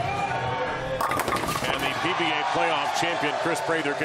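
Bowling pins crash as the ball strikes them.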